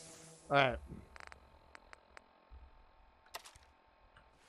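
Short electronic clicks tick as menu items are selected.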